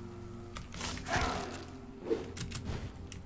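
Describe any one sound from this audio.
A blade strikes with a sharp, wet impact.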